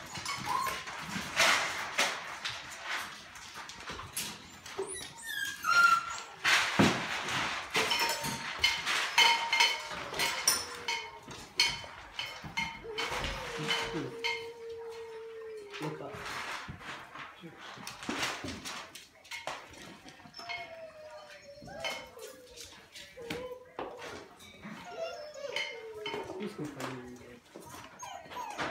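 Puppies whine and yelp.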